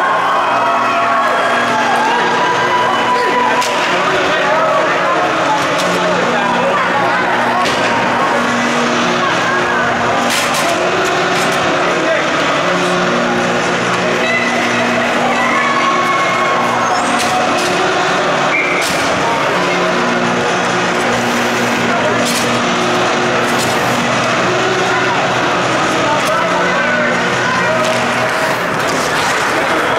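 A crowd murmurs and calls out in a large echoing arena.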